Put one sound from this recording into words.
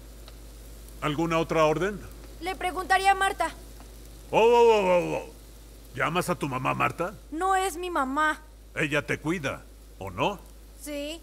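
An elderly man speaks with animation close by.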